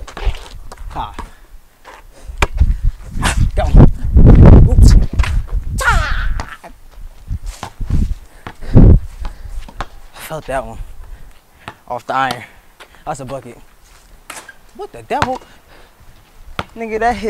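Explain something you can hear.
A basketball bounces on concrete.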